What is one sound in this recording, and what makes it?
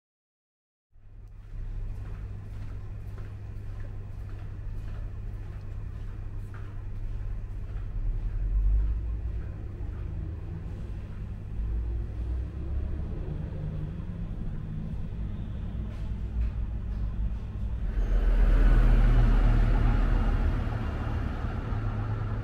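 Traffic hums steadily on a town street.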